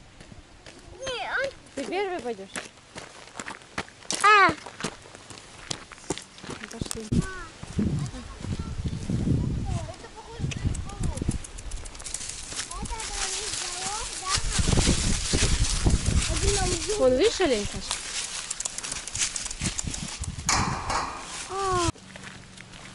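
A young child chatters in a high voice close by.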